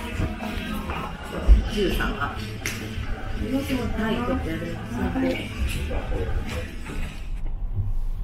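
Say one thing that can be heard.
Women talk and chatter nearby indoors.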